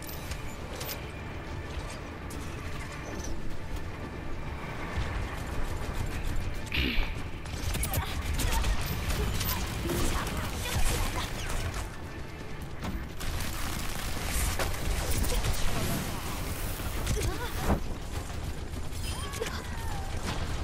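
Rapid blaster gunfire rattles in bursts.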